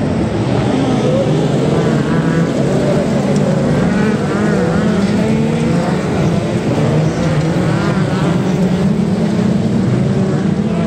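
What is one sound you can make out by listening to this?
Many racing car engines roar and rev loudly close by, outdoors.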